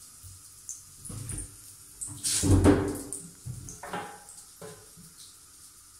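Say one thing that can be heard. A kitten's paws thump and scrabble on a hard tub.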